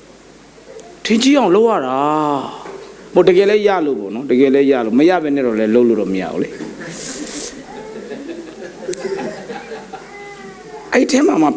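A man speaks with animation into a microphone, in a large echoing hall.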